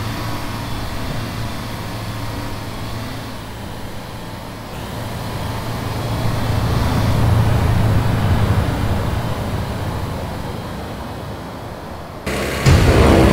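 A diesel semi truck drives along a road.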